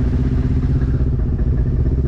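A vehicle splashes through muddy water.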